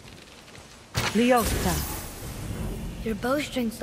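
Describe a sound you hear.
A magical burst of energy whooshes and hums.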